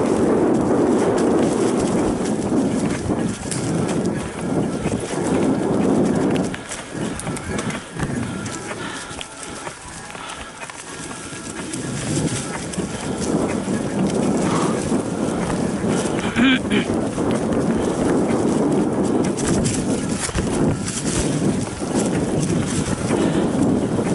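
Bicycle tyres roll and crunch over dry leaves on a dirt trail.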